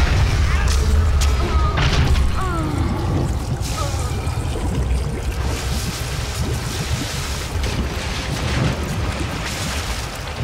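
Thick liquid splashes and churns as a body sinks into it.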